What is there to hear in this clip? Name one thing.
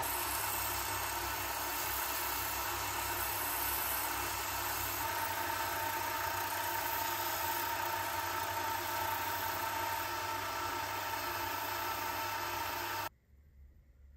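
A lathe spins with a steady whirring hum.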